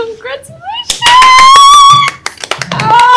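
A young woman squeals with excitement.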